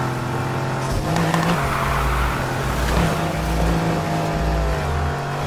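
Tyres screech as a car drifts through a bend.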